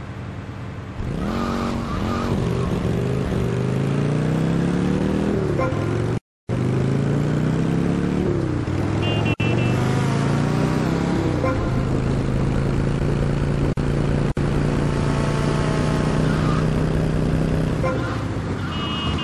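A motorcycle engine revs and roars as it speeds along.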